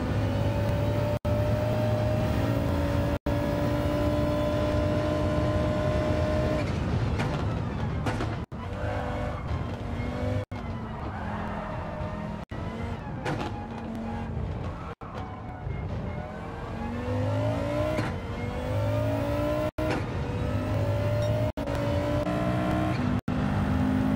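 A racing car engine roars, rising in pitch as it speeds up and dropping as it slows.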